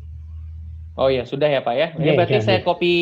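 A young man speaks into a microphone, close and clear.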